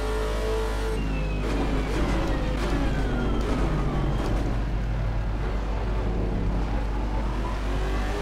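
A racing car engine winds down sharply as the car brakes and shifts down.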